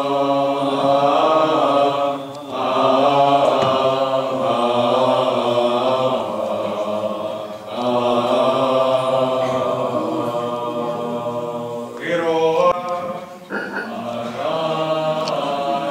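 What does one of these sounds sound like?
A choir of men sings a slow chant together, close by, echoing in a large room.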